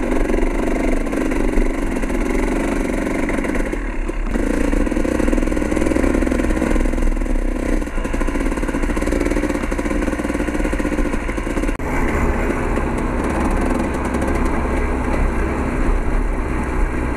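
A motorcycle engine hums and revs up and down close by.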